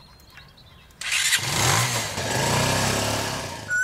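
A motorcycle engine runs and pulls away.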